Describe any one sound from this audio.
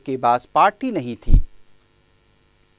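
A middle-aged woman speaks into a microphone.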